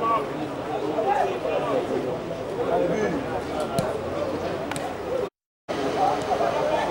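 Several men shout and call out across an open outdoor field.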